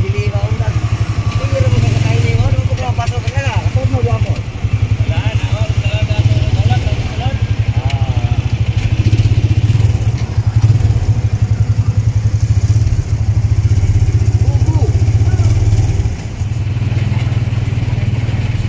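A single-cylinder motorcycle tricycle engine chugs as it rides along a street.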